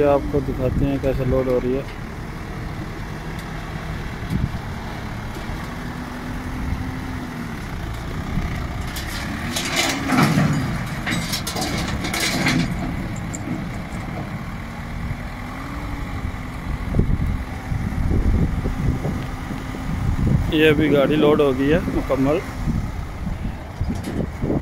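A truck engine hums and revs.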